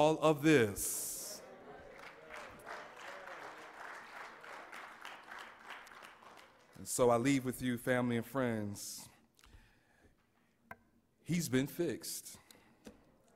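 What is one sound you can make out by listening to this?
A man speaks calmly and with feeling into a microphone, in a large echoing hall.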